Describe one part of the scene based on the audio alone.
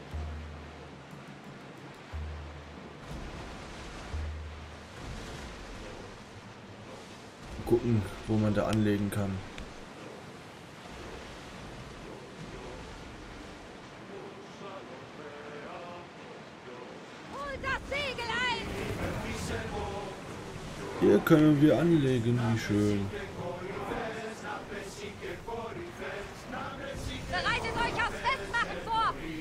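Waves rush and splash against a wooden ship's hull.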